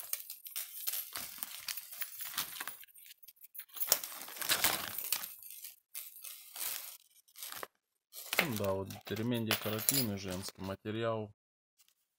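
A metal chain jingles as it is handled.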